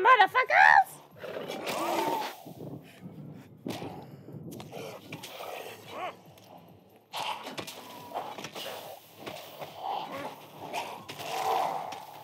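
Zombies groan and snarl close by.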